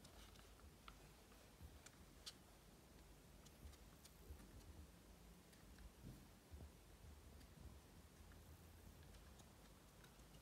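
A rat's claws patter and scratch softly on a wooden floor.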